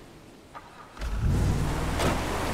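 A truck engine starts and rumbles loudly.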